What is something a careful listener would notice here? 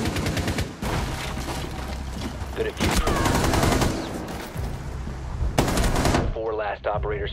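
Rapid gunshots crack loudly, echoing off walls.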